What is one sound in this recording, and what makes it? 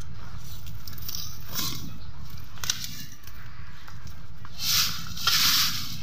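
A metal hoe scrapes and rustles through dry grass and leaves.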